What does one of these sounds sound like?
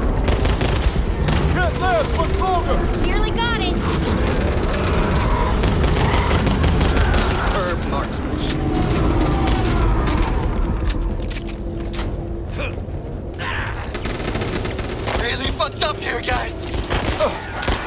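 Gunshots fire rapidly in bursts.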